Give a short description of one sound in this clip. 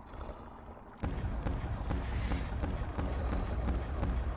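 A ray gun fires with sharp zapping shots.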